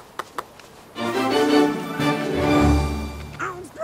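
A bright musical jingle plays a short tune.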